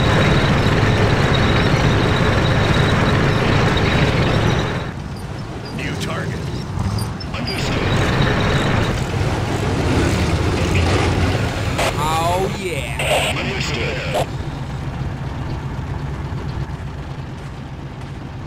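Tank engines rumble and clatter steadily.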